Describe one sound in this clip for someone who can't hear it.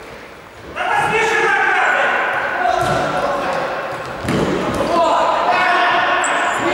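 Men shout across a large echoing hall.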